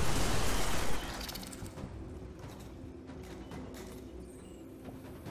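A weapon clicks and clacks as it is reloaded.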